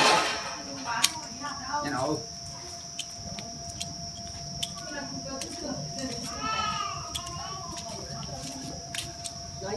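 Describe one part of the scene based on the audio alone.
Pruning shears snip twigs with sharp clicks.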